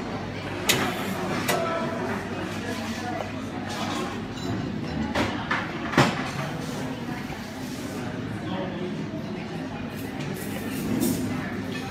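Steamed milk pours softly into a cup.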